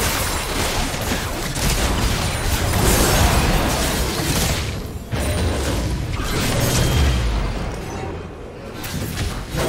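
Spell blasts and hits crackle and boom in a fast game fight.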